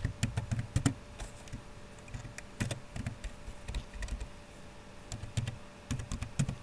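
Keys click on a computer keyboard in short bursts of typing.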